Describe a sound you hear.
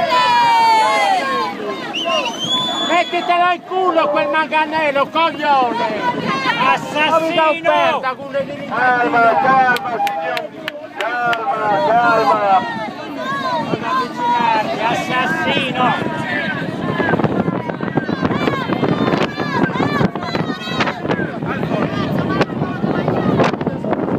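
A group of men and women talk loudly and excitedly nearby, outdoors.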